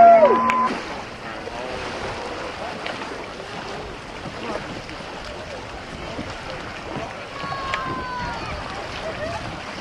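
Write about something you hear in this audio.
A man wades through shallow water with light splashes.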